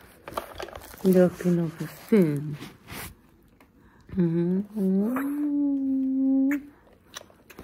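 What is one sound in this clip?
A woman talks playfully up close in a high, sing-song voice.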